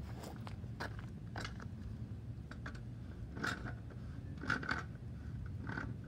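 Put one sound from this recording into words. Footsteps crunch on gravel close by.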